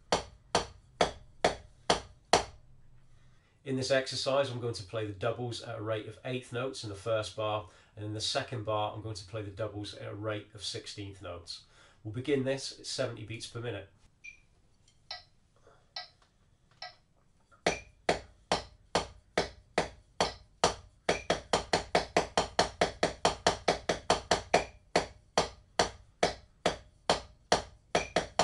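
Drumsticks tap a practice pad in a steady rhythm.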